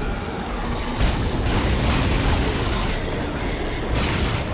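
A blast rumbles.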